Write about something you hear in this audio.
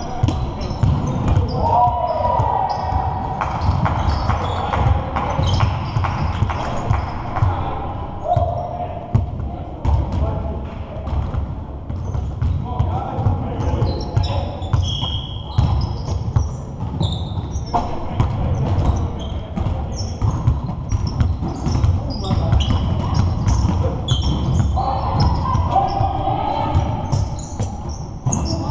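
Basketballs bounce on a hard floor in a large echoing hall.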